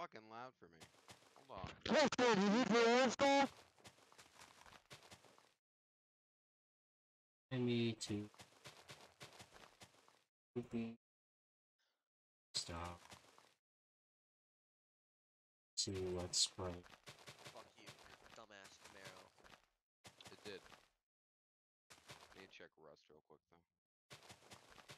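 Blocks are placed with short, soft thuds, one after another.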